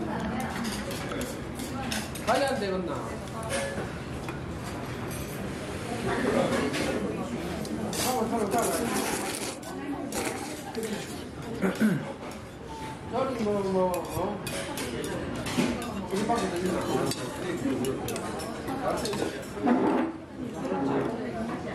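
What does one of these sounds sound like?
Noodles slosh softly in broth as chopsticks lift them.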